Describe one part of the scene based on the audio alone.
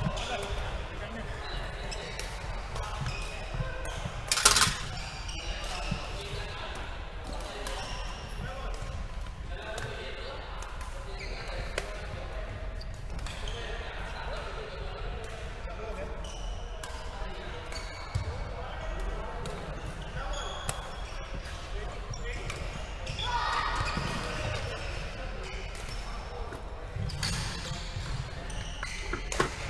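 Men chatter in a large echoing hall.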